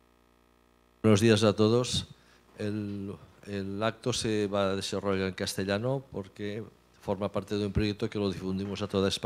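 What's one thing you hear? A man speaks with animation into a microphone through loudspeakers in an echoing hall.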